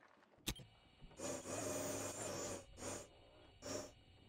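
A small drone whirs as it rolls along.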